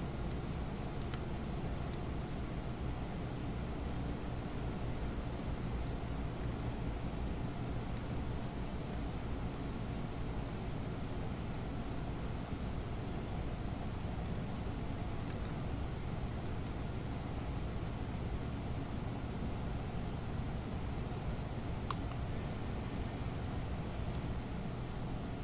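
A propeller plane's engine drones steadily and loudly.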